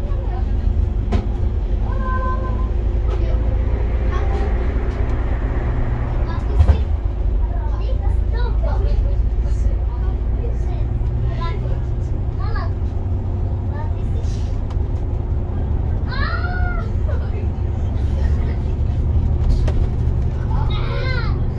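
A heavy vehicle's engine rumbles steadily at close range.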